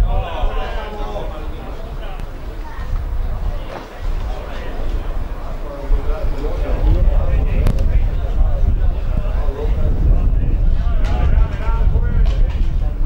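Men shout to each other outdoors in the distance.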